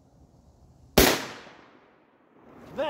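A rifle fires a single loud shot that echoes outdoors.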